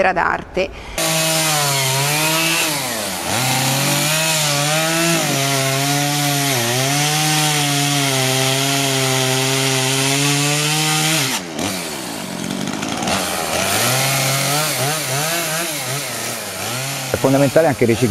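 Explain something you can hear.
A chainsaw engine runs and whines as it cuts into wood.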